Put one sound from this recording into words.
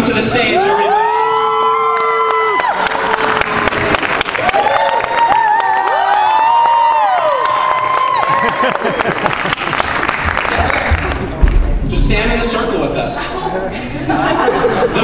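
A crowd cheers and whoops loudly in a large hall.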